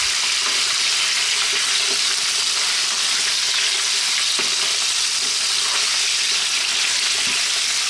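A wooden spatula scrapes and stirs meat in a frying pan.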